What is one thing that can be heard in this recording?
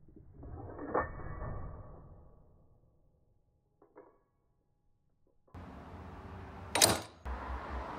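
A slide hammer strikes with sharp metal knocks.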